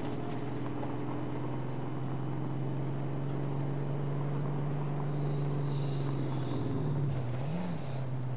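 A car engine hums steadily as it drives slowly.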